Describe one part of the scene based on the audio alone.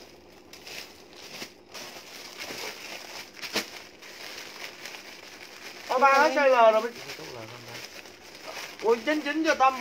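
A plastic bag crinkles and rustles in a young woman's hands.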